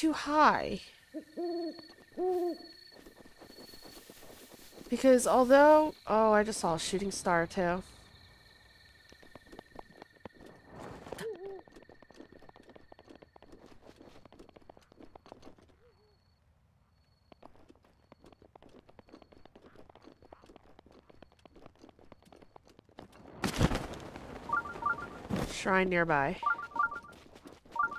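Footsteps crunch softly on grass and earth.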